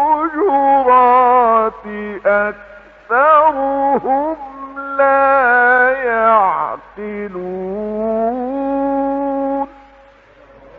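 An elderly man chants slowly in a long, melodic voice, heard through an old, hissy recording.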